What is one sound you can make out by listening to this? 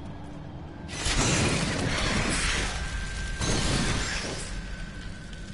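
Fiery blasts roar and crackle.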